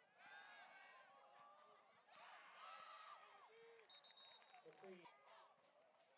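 A crowd cheers in the stands.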